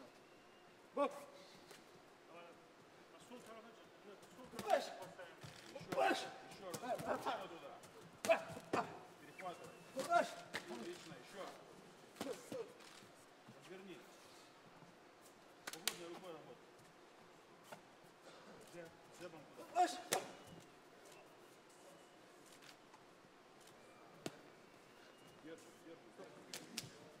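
Gloved punches thud against a boxer's body.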